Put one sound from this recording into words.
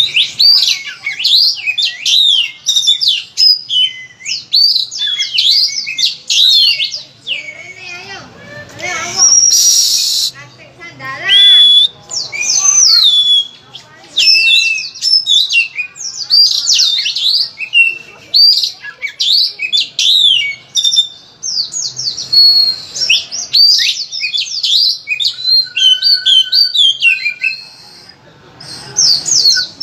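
An oriental magpie-robin sings a loud, varied song of whistles and mimicked phrases.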